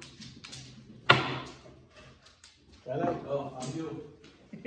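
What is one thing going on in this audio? Mahjong tiles clack sharply against each other on a table.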